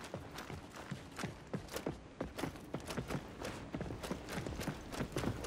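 Armoured footsteps run quickly over stone, clinking with each step.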